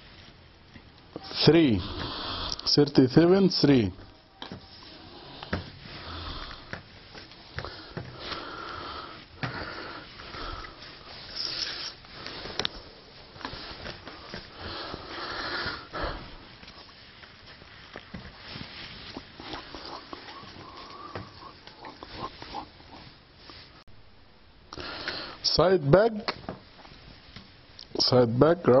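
Fabric pieces rustle and slide as hands move them around.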